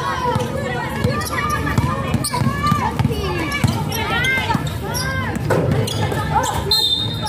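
Young players and spectators shout and chatter outdoors.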